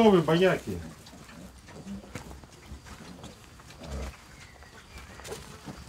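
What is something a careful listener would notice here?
Small piglets squeal and grunt close by.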